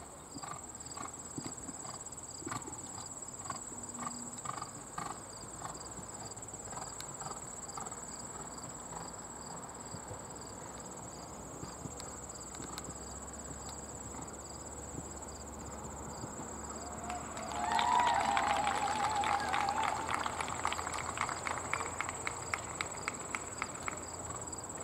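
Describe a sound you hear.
A horse's hooves thud on soft ground at a canter.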